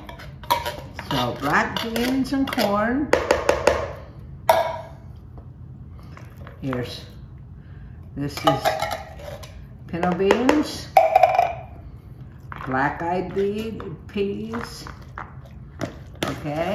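A metal spoon scrapes and clinks against a tin can.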